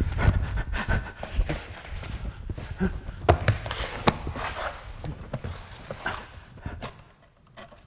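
Loud knocks and scrapes echo as a man moves about on a hard floor.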